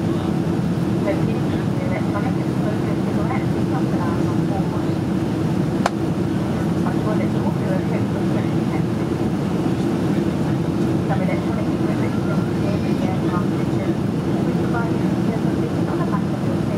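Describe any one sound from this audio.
A jet airliner's engines roar with a steady low drone inside the cabin.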